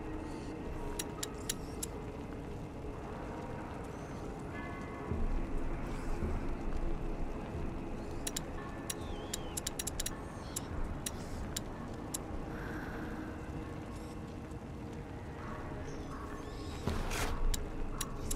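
Short soft clicks tick now and then as a menu selection moves.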